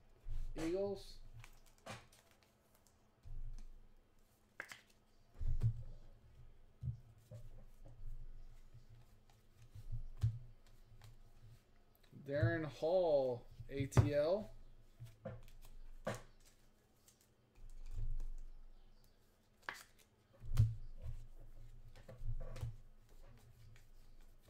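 Trading cards rustle and tap as hands shuffle them close by.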